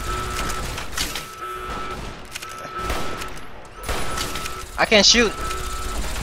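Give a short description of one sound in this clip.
Rifle shots ring out with a loud crack.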